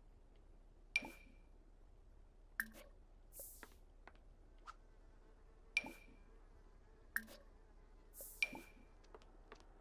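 Short game menu clicks and chimes sound as items are browsed.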